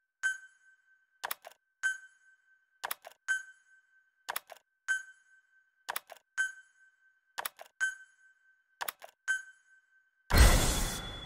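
Short electronic blips chime in quick pairs at a steady pace.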